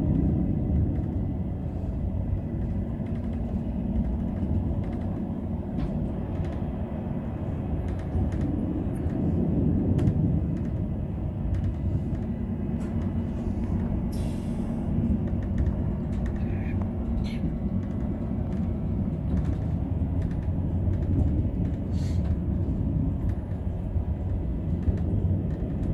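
A train rumbles steadily along the rails, heard from inside the cab.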